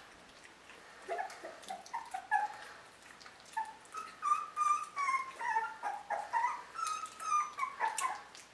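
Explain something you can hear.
A puppy whimpers and squeals in high, wavering cries.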